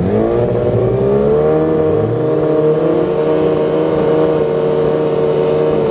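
A race car engine roars loudly close by, rising in pitch and then holding steady.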